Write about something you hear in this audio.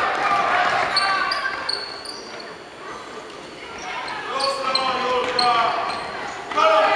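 Sneakers squeak sharply on a wooden floor.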